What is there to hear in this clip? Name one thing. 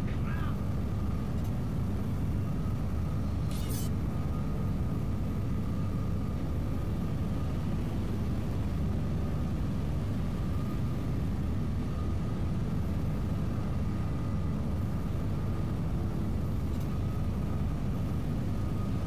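A heavy engine rumbles low and steadily.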